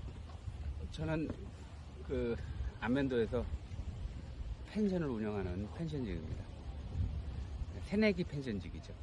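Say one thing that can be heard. A middle-aged man speaks calmly close by, outdoors.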